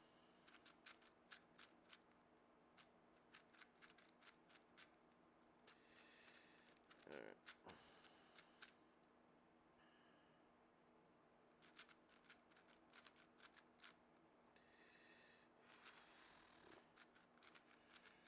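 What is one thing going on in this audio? A puzzle cube clicks and clacks as its layers are turned quickly.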